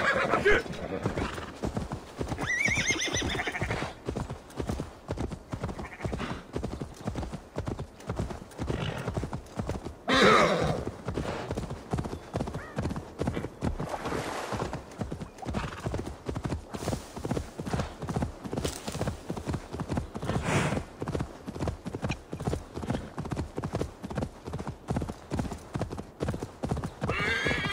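Horse hooves thud quickly and steadily over grass.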